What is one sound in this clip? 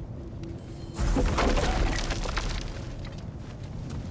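A heavy door rumbles open with a loud whoosh.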